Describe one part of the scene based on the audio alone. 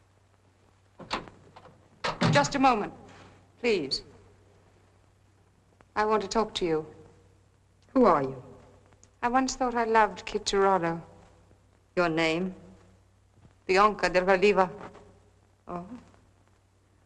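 A second young woman answers in a soft, measured voice.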